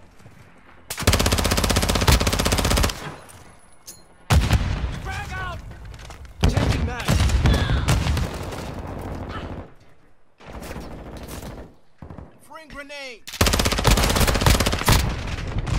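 An automatic gun fires rapid bursts at close range.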